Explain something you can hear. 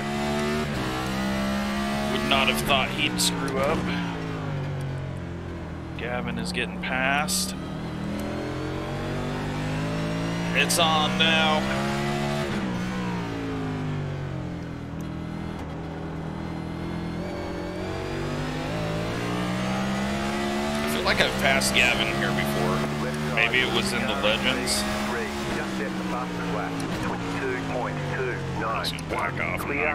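A race car engine roars and revs up and down through the gears.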